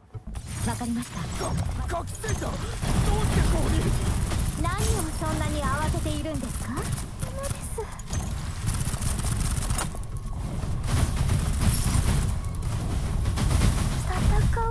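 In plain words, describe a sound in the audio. Energy blasts whoosh and crackle in quick bursts.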